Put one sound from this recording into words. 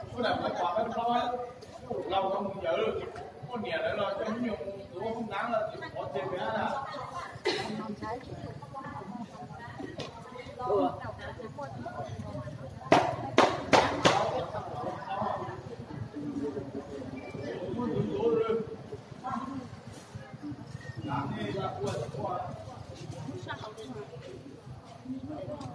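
Several women chatter nearby in a crowd.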